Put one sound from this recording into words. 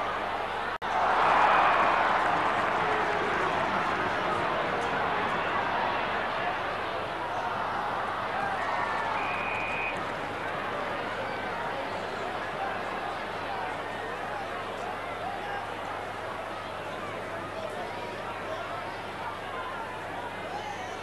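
A large crowd roars and cheers steadily outdoors.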